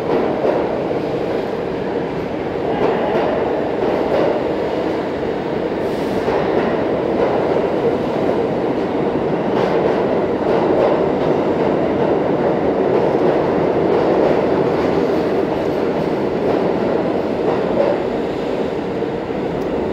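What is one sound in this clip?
A subway train rumbles and rattles past at speed, loud and echoing.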